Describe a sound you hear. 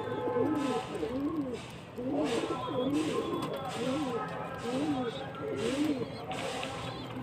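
Pigeons coo close by.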